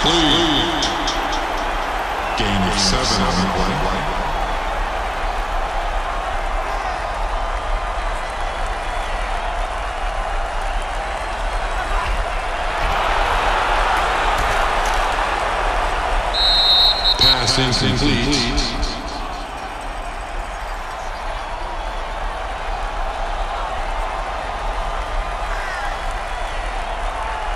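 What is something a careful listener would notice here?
A large stadium crowd roars steadily, swelling for a while.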